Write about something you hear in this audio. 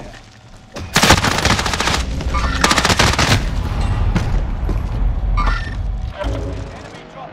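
Gunfire bursts out loudly in rapid shots.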